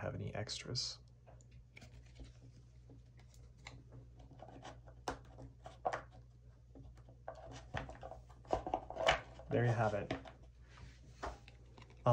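Playing cards are laid softly onto a table.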